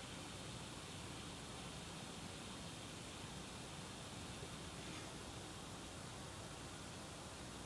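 A gas torch flame roars and hisses steadily.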